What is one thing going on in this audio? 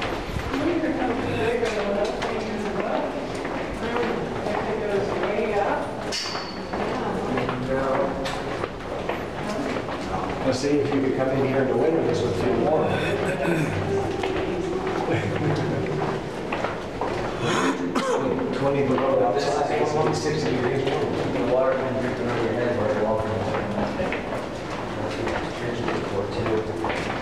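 Several adults chat and talk nearby, heard echoing in a narrow tunnel.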